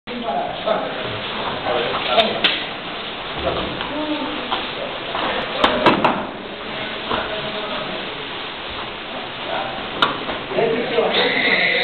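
Young people chatter and call out in an echoing hall.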